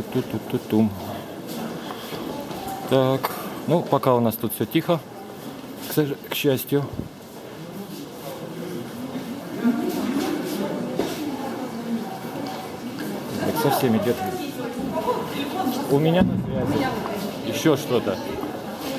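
Men talk loudly and excitedly close by, in a large echoing hall.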